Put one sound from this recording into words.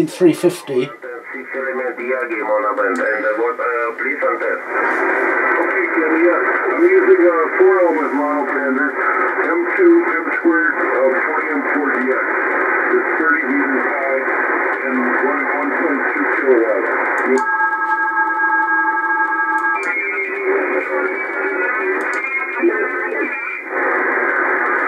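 A shortwave radio crackles and warbles with a distorted, muffled signal through a loudspeaker.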